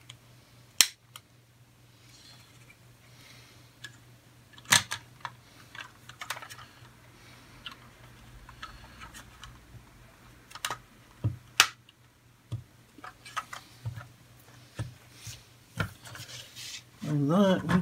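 Small plastic parts click and snap together in someone's hands.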